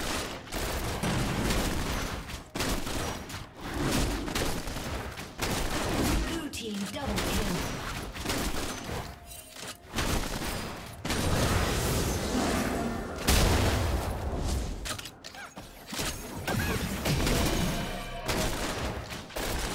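Spell blasts and fiery explosions burst in quick succession.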